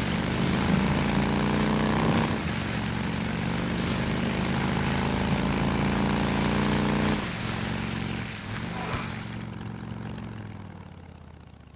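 A motorcycle engine roars steadily, then eases off and fades.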